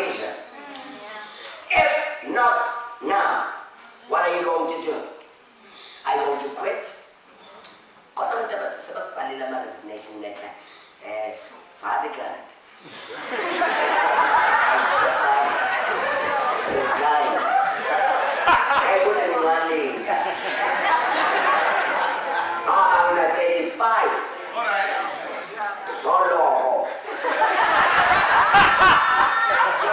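A man preaches with passion through a microphone in an echoing hall.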